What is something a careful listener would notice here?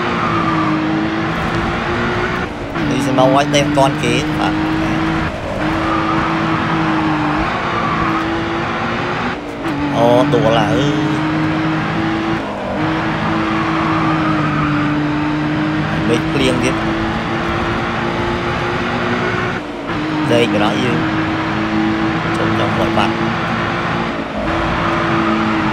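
A sports car engine roars steadily at high revs, dropping briefly with each gear shift.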